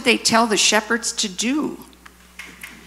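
A child reads aloud nearby.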